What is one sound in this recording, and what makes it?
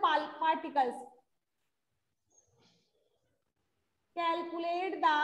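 A woman speaks clearly and steadily, close by.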